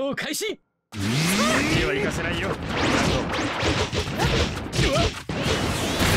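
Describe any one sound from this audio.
Punches and kicks land with sharp thuds and whooshes.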